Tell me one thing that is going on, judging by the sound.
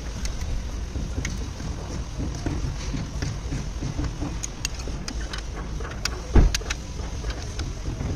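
A socket wrench ratchets while loosening a bolt.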